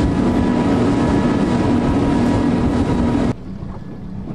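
Wind blows hard across open water.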